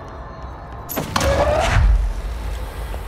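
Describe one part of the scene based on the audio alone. A heavy object whooshes through the air and crashes.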